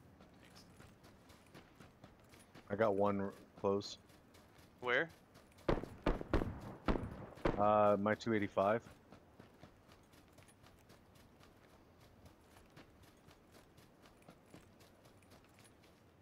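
Footsteps rustle through grass at a slow, steady pace.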